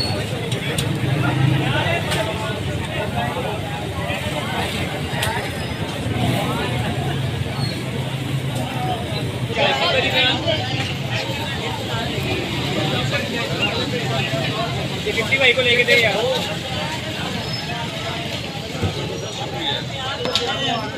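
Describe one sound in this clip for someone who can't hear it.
Patties sizzle steadily on a hot griddle.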